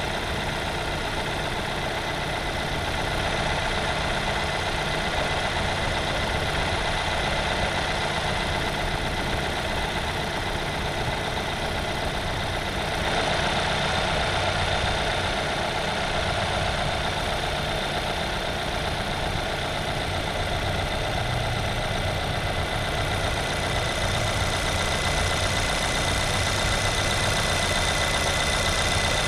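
A car engine idles steadily, close by, with a whirring hum.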